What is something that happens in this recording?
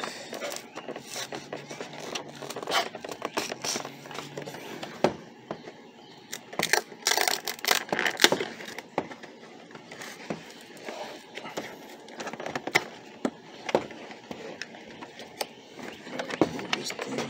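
A cardboard box rustles and creaks as hands handle it.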